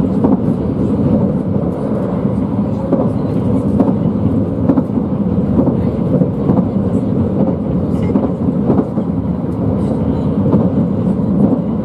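Train wheels clack over rail joints at a regular pace.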